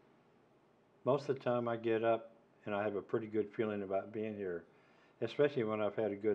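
An older man speaks with emphasis, close to a microphone.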